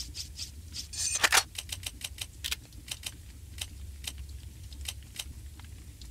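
Short soft clicks tick in quick succession.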